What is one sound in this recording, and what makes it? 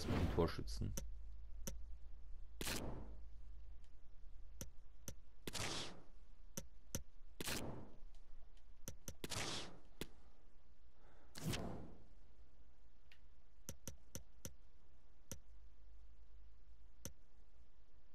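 Short menu clicks sound as selections change.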